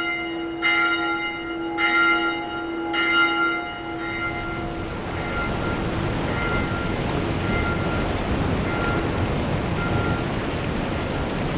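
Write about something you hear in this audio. A large metal bell tolls three times and its ring slowly fades.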